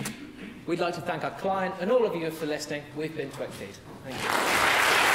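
A young man speaks into a microphone.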